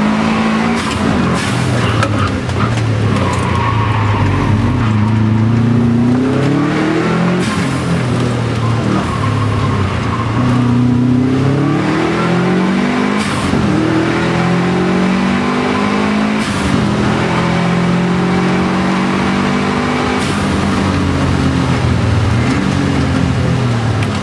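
A car engine revs hard and loud, rising and falling in pitch.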